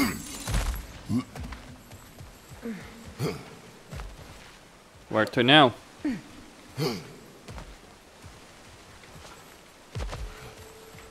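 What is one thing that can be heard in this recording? Heavy footsteps thud on rocky ground.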